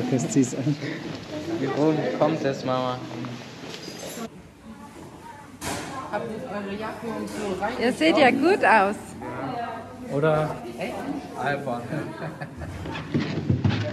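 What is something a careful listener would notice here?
A boy talks nearby.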